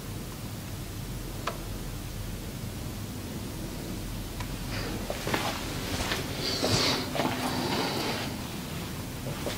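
Hands rub and press against skin and hair.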